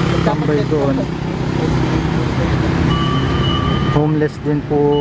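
Traffic rumbles steadily on a street outdoors.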